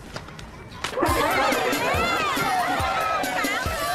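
A crowd cheers and shouts loudly at a party.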